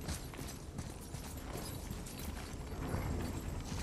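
Coins and treasure clatter as they are scooped up.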